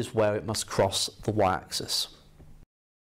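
A man speaks calmly and clearly into a nearby microphone.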